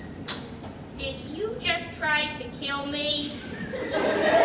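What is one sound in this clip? A young woman speaks with expression, heard from a distance in a large hall.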